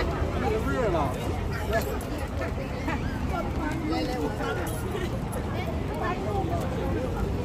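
A crowd of men, women and children chatter nearby outdoors.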